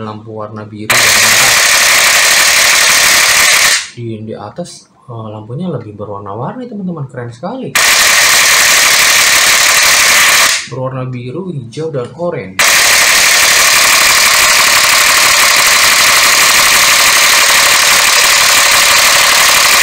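A toy gun blares a loud, harsh electronic firing sound in long bursts.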